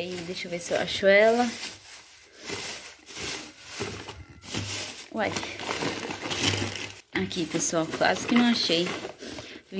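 Plastic bags rustle and crinkle as they are handled close by.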